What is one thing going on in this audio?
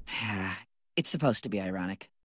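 A boy speaks in a flat, bored voice.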